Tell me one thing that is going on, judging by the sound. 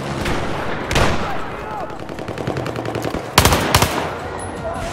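Gunshots crack loudly nearby.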